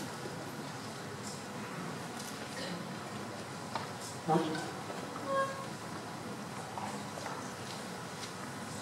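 A crowd murmurs softly.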